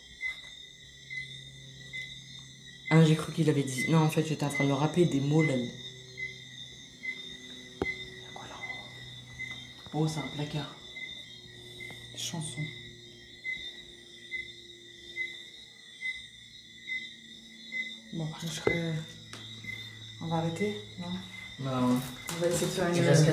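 A handheld electronic device gives out short, evenly spaced beeps.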